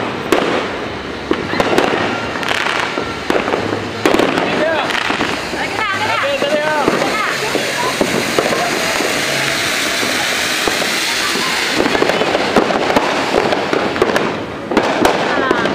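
A fountain firework hisses and crackles loudly.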